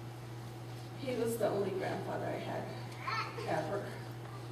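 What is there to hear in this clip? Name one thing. A woman speaks calmly to an audience, heard from across a room.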